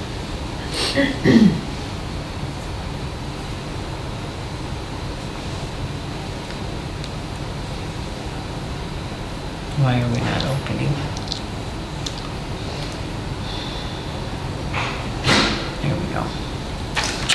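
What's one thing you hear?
Adults speak briefly in a room, heard from a distant microphone with a steady background hum.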